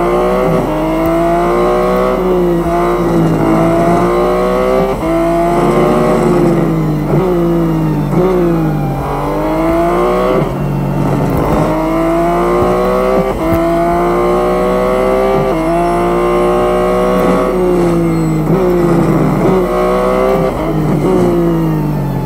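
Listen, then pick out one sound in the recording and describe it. A racing car engine roars loudly, rising in pitch as it speeds up and dropping sharply at each gear change and braking.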